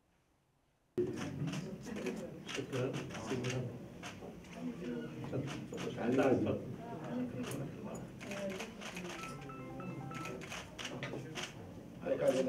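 A crowd of men chatter and murmur close by.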